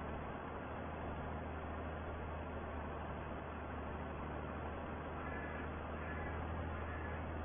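A baler rumbles and clatters behind a tractor.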